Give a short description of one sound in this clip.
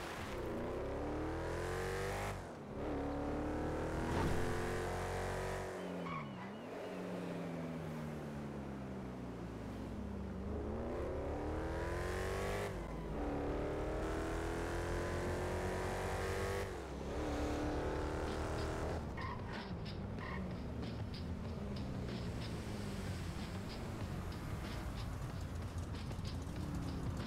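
A hot rod's engine accelerates at full throttle, shifting up through the gears.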